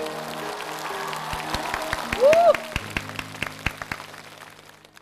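An audience claps along in rhythm.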